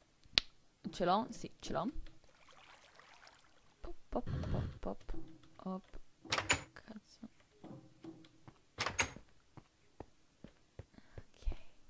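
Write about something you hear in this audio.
A young woman talks casually into a microphone, close by.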